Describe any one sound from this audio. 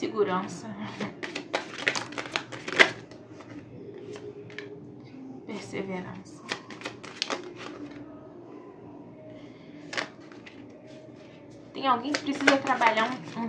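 Playing cards riffle and slap together as a deck is shuffled.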